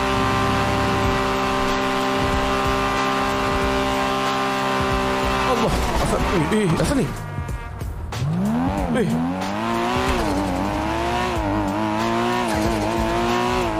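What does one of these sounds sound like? A sports car engine roars at high speed, then drops and revs up again.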